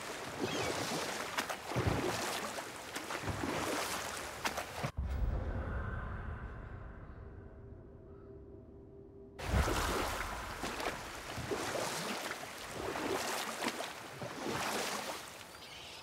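Oars splash and water churns as a rowboat moves along.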